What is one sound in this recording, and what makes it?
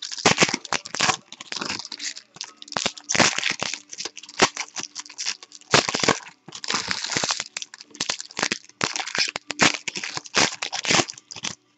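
Cards rustle and slide against each other.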